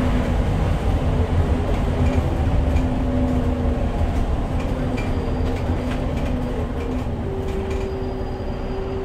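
Small rattles and clicks come from inside the bus.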